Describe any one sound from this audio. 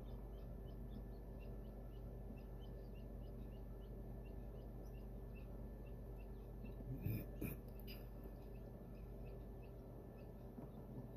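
A chick peeps rapidly and softly from inside a cracked egg.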